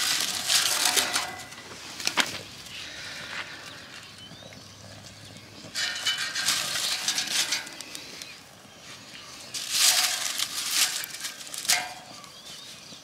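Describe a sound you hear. Dry grass and twigs rustle and crackle as a hand pushes them into a small stove.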